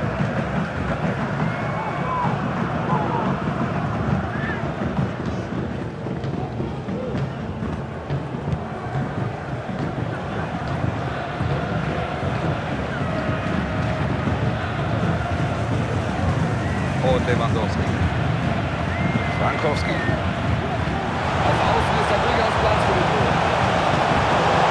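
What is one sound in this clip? A large crowd roars steadily in a stadium, swelling louder toward the end.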